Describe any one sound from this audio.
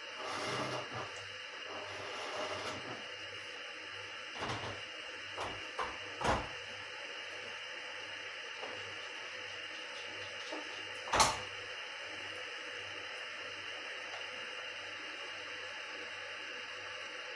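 A kettle hisses softly as it heats.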